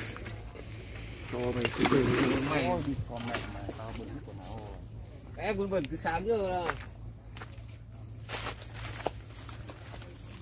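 Dry leaves and twigs rustle as a wire trap is dragged over the ground.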